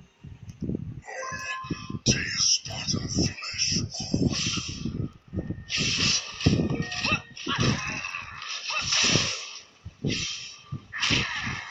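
Game spell effects whoosh and crash in a fast fight.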